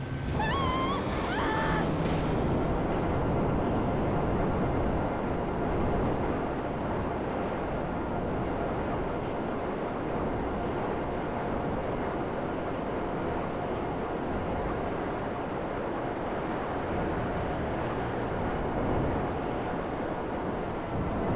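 A jetpack roars steadily as it flies through the air.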